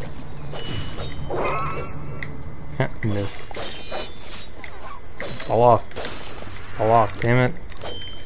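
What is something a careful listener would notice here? A blade swishes and slashes in quick strikes.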